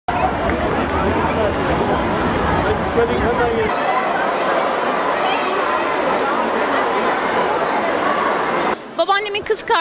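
A large crowd chatters and murmurs all around.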